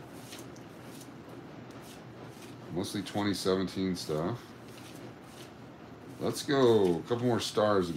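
Paper banknotes rustle and flick as they are counted by hand.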